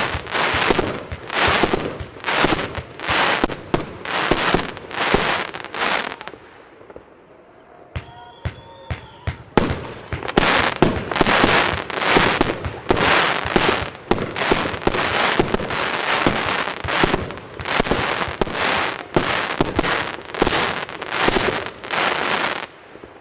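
Firework bursts crackle overhead.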